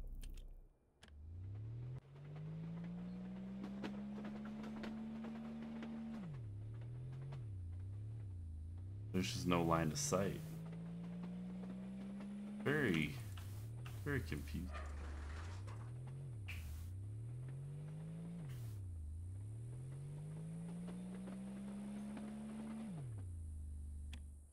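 A machine's motor whirs, rising and falling in pitch.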